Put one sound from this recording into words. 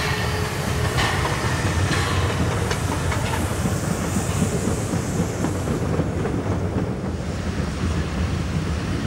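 Railway carriages rumble and clatter past on the tracks.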